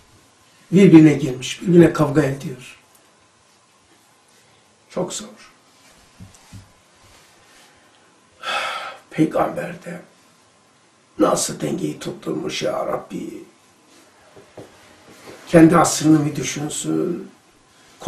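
An elderly man speaks calmly and slowly into a nearby microphone, with long pauses.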